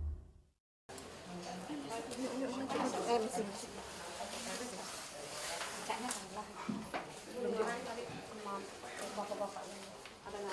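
Women and men talk quietly nearby.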